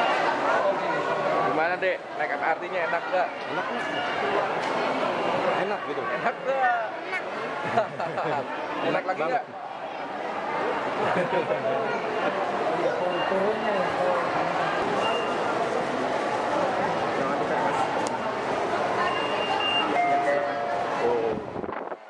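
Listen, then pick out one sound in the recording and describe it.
A crowd chatters all around in an echoing hall.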